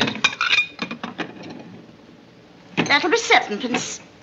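Glasses clink on a counter.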